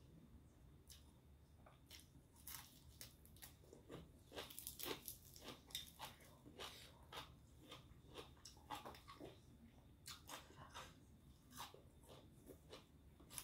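A woman chews crunchy fresh greens loudly and wetly, close to a microphone.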